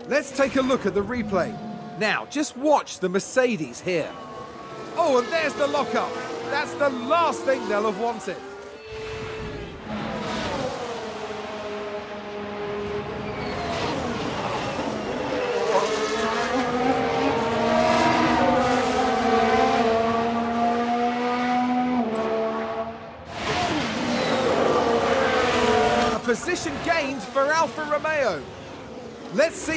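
Racing car engines scream past, rising and falling in pitch.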